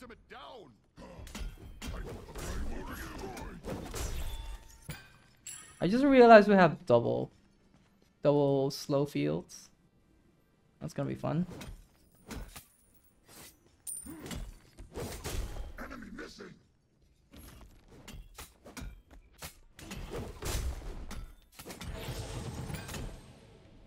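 Weapons strike with sharp thuds and clangs.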